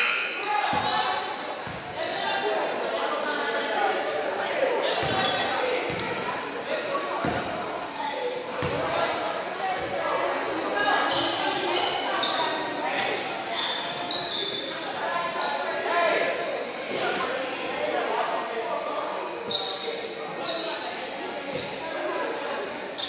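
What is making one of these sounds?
Players and spectators talk and call out in a large echoing gym.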